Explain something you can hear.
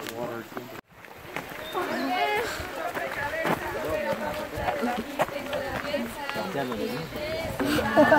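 A young woman talks cheerfully and close by.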